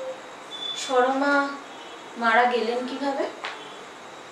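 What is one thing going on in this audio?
A young woman sings close by in a soft, drawn-out voice.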